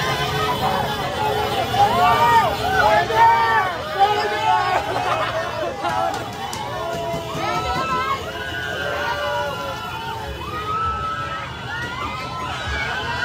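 A large crowd of men and women cheers and shouts loudly outdoors.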